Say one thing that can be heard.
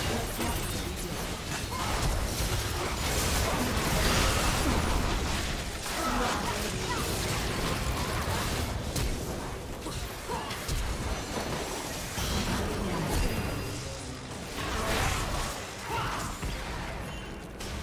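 Magic blasts whoosh and crackle in a hectic fight.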